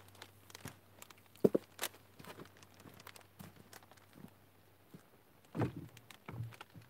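Feet shuffle and thud on dry ground nearby.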